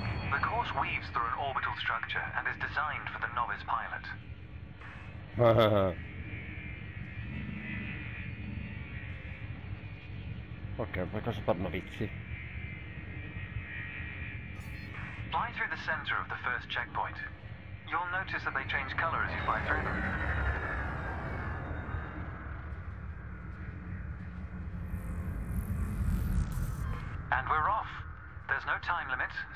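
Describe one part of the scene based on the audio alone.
A spacecraft engine hums low and steady.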